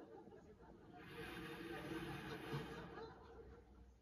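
A crowd applauds, heard through a television speaker.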